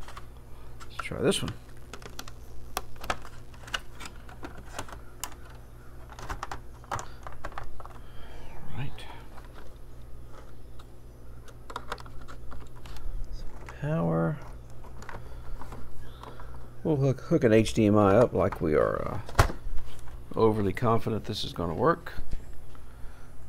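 Plastic parts click and knock as hands handle an opened game console.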